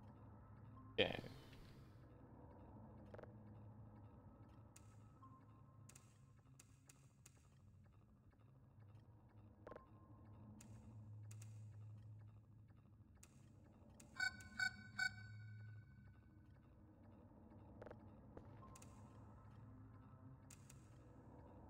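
Electronic console beeps and clicks sound now and then.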